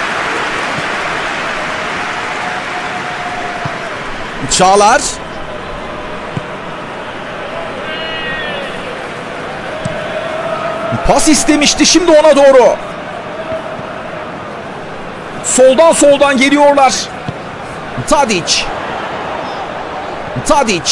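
A stadium crowd murmurs steadily in a large open space.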